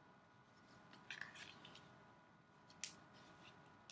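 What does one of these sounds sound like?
A card is set down with a light tap on a stack of cards.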